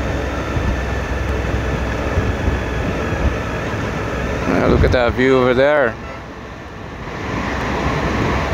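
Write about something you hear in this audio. Wind rushes loudly past a moving motorcycle.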